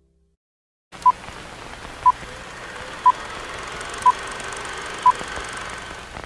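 Short beeps sound once a second in a countdown.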